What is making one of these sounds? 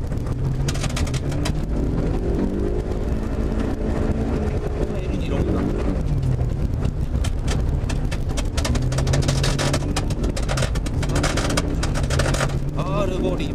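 Snow and ice patter against the underside of a car.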